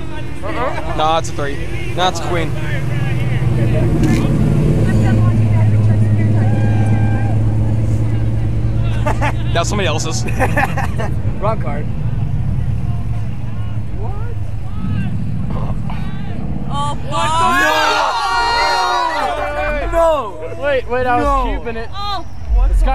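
Young men talk and laugh close by.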